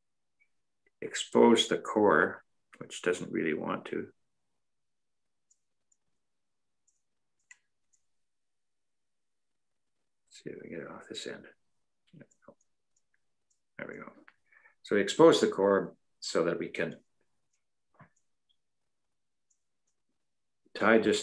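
An elderly man talks calmly and close up, in short bursts with pauses, as if heard through an online call.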